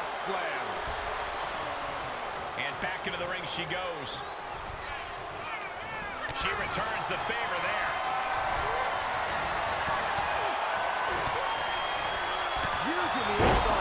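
Bodies thud and slam onto a wrestling mat.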